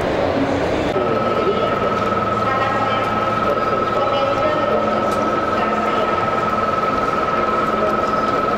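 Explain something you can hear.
A dough mixer hums and whirs steadily.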